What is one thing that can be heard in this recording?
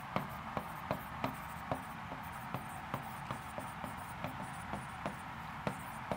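A pen taps and scratches on a tablet surface.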